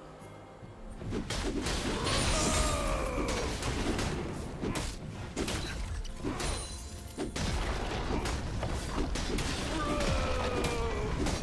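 Video game spell effects crackle and whoosh during a fight.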